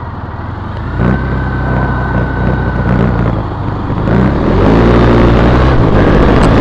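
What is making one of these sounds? A vehicle engine starts, idles and then revs as it pulls away.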